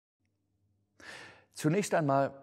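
An elderly man reads aloud calmly, close to a microphone.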